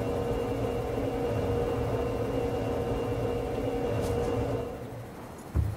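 Ocean waves wash gently outdoors.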